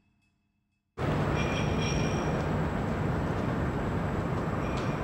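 A scooter passes along a street at night.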